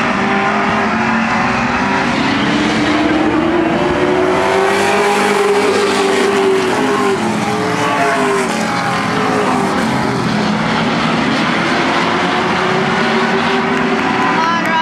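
Several V8 late model stock cars roar past at full throttle, their engine pitch rising and falling.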